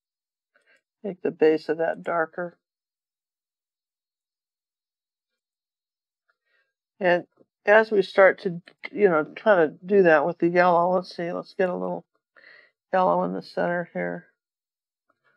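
An older woman speaks calmly, close to a microphone.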